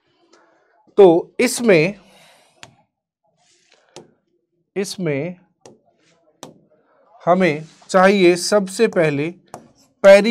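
A man speaks clearly into a close microphone, explaining in short bursts with pauses.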